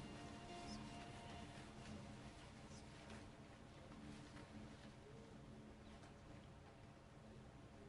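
A group of young people sings softly together.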